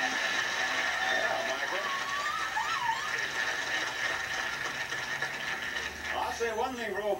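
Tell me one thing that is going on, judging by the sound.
A studio audience cheers and applauds loudly.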